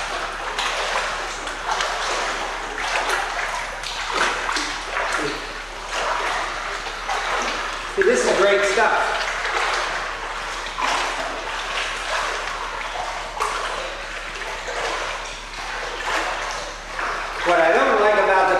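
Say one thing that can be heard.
A swimmer splashes and churns through water in an echoing indoor pool.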